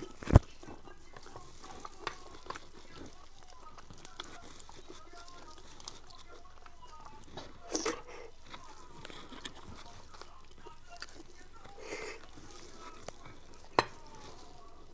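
A metal spoon scrapes and clicks against bone.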